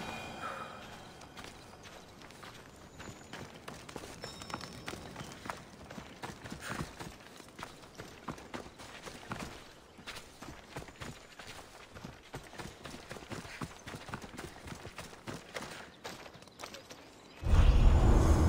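Footsteps crunch on dirt and grass.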